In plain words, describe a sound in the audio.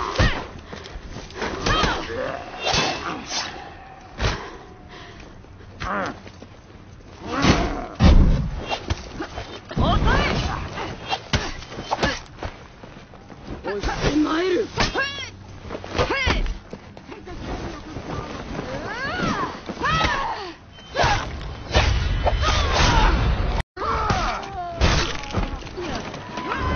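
Swords clash with sharp metallic clangs.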